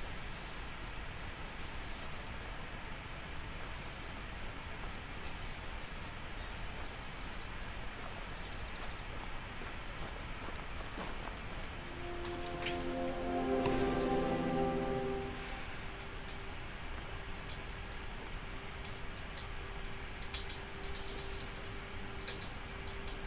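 Footsteps crunch over grass and dry ground.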